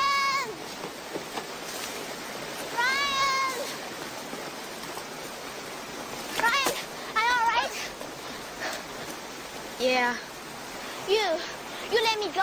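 A young woman shouts out loudly, calling again and again.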